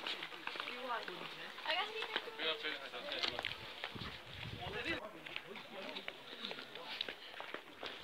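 Footsteps scuff on stone paving.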